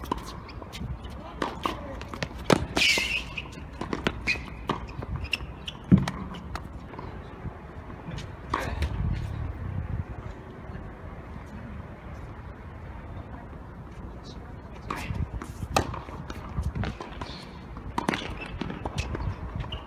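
Tennis rackets strike a ball back and forth.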